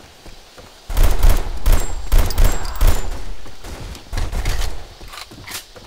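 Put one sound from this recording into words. Rapid gunshots fire in loud bursts.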